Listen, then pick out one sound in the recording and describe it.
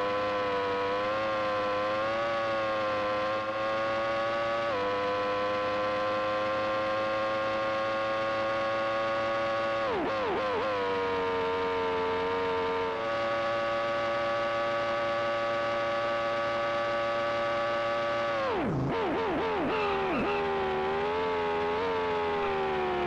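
A racing car engine whines at high revs, dropping sharply as gears shift down for corners.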